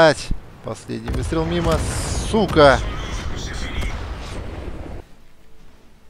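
A shell explodes with a heavy, rumbling boom.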